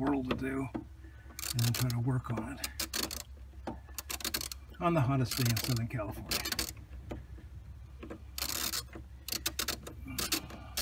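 A small metal clip clicks against engine parts.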